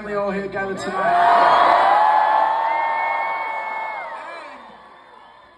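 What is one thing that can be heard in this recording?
A crowd screams and cheers in a large echoing hall.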